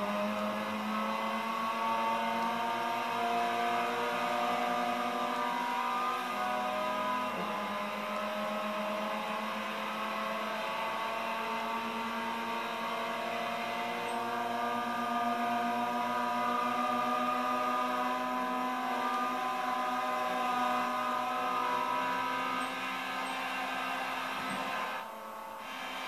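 A racing car engine roars loudly, its pitch rising and dropping as gears shift.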